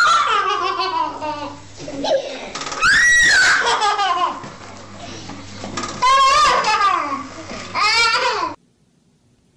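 A baby squeals and giggles loudly close by.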